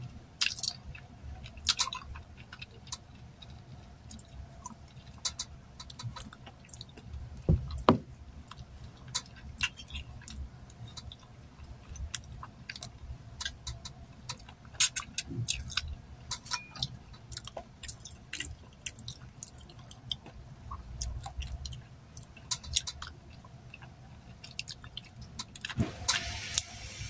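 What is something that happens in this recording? A young woman chews and smacks her lips close by.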